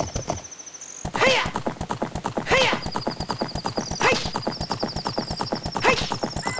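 A horse gallops with quick, steady hoofbeats.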